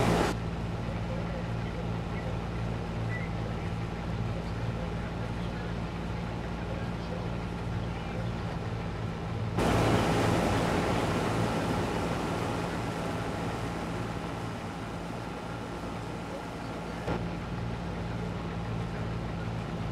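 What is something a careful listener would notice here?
A combine harvester engine hums and rumbles steadily.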